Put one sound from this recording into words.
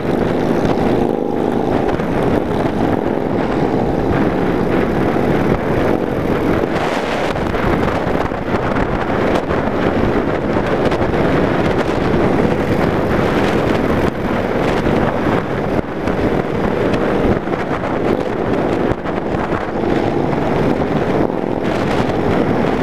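A motorcycle engine rumbles steadily while riding at speed.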